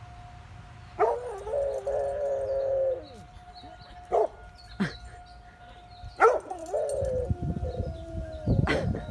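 A large dog howls long and loudly nearby.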